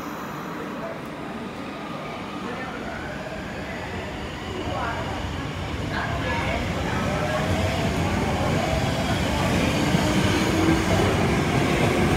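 A train rumbles past close by, its wheels clattering on the rails and growing louder.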